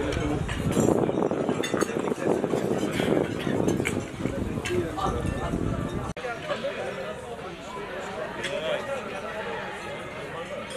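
Men chat and talk over one another at a busy outdoor gathering.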